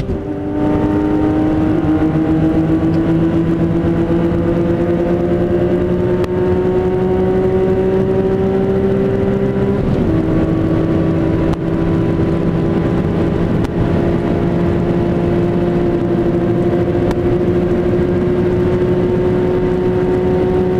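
A straight-six sports car engine accelerates hard, heard from inside the car.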